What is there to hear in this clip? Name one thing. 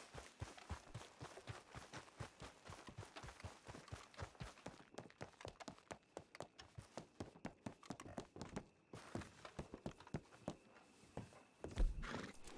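Footsteps run quickly over hard ground and wooden boards.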